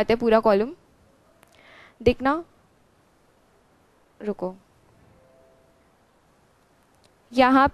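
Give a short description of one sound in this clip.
A young woman speaks calmly into a close microphone, in short bursts with pauses.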